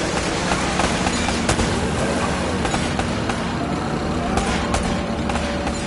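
A pistol fires in sharp single shots.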